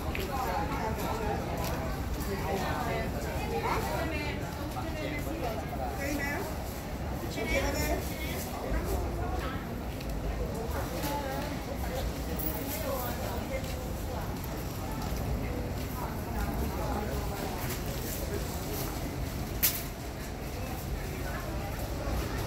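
Men and women chatter nearby in a busy outdoor crowd.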